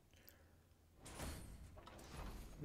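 A short whoosh sweeps past.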